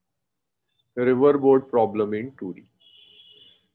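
A woman speaks briefly and calmly over an online call.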